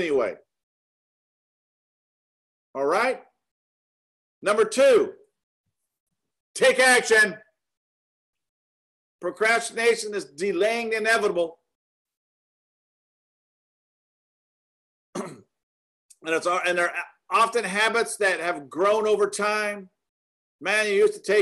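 A middle-aged man speaks with animation over an online call, in bursts with pauses.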